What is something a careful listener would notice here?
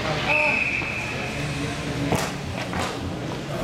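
Ice skates scrape on ice.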